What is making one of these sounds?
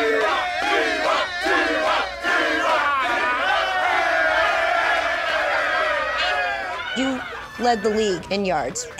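A group of men shout and cheer loudly nearby.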